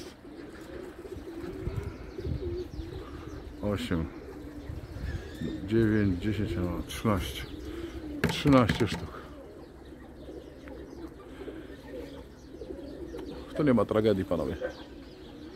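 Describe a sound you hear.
Pigeons coo softly and repeatedly.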